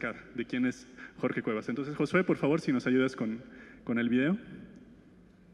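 A young man speaks with animation into a microphone over a loudspeaker.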